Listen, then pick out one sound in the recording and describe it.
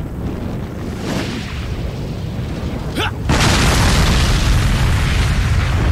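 Flames roar from an explosion.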